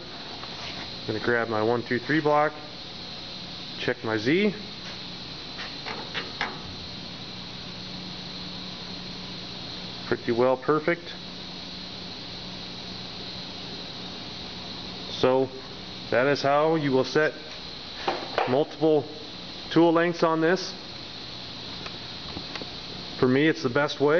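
A machine spindle hums steadily with a high whine.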